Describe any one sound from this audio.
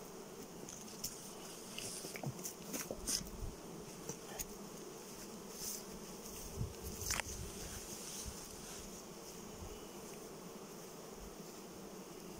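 Bees hum steadily around hives outdoors.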